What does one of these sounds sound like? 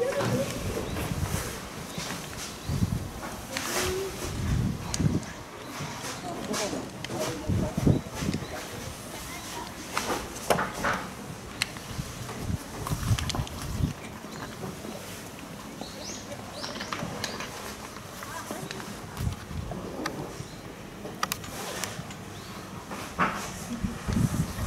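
Young players call out to each other across an open field.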